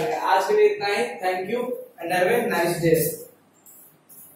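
A man speaks clearly and close by, explaining in a teaching tone.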